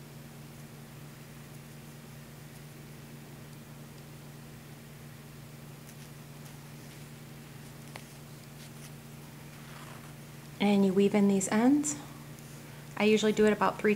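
Yarn rustles softly as it is pulled through crocheted fabric.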